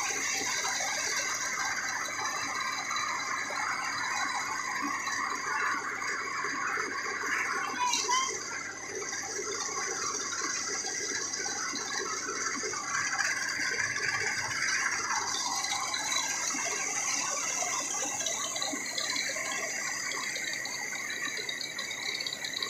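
A machine runs with a steady, loud mechanical whine and rattle.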